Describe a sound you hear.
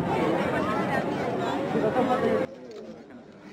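A crowd chatters loudly outdoors.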